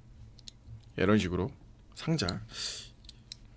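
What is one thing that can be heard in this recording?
A young man speaks casually and close to a microphone.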